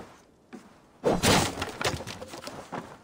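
A heavy wooden trapdoor bangs open.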